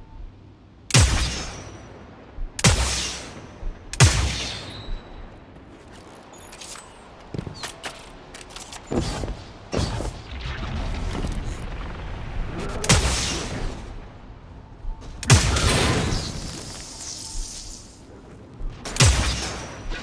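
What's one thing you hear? A rifle fires loud, booming shots every few seconds, each ringing out briefly.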